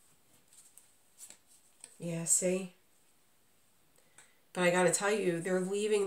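Playing cards rustle and flick as a hand handles them.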